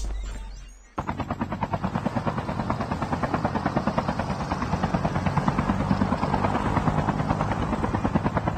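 A helicopter's rotor thumps rapidly and steadily.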